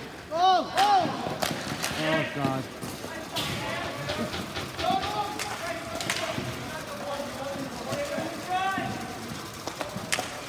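Skate wheels rumble across a hard rink.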